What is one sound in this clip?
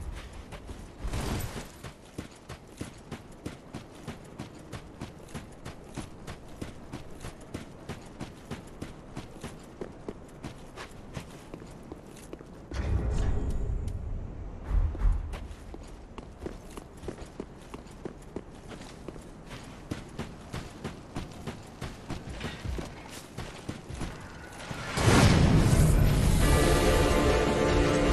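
Armoured footsteps run steadily over stone and gravel.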